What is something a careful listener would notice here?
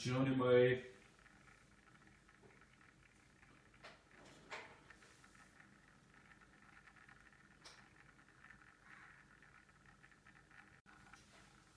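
A small motor hums steadily.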